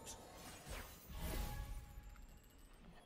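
A game effect whooshes with a swipe.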